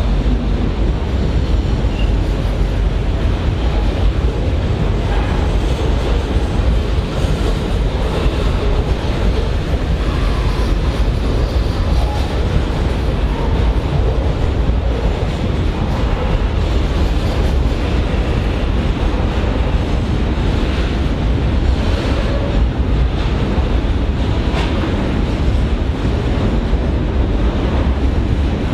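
A long freight train rumbles steadily past at close range.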